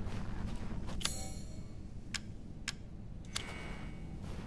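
Short menu clicks sound.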